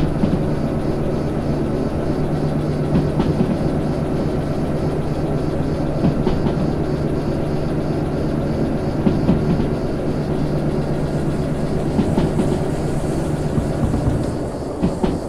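A diesel locomotive engine drones steadily.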